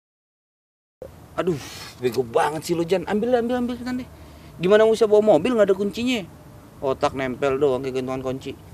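A young man speaks irritably close by.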